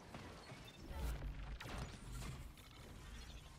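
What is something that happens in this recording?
Gunfire and blasts crack in quick bursts.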